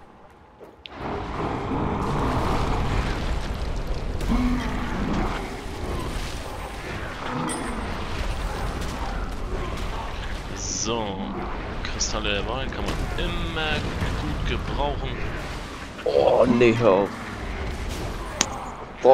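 Magic blasts and weapon blows clash in a fantasy game battle.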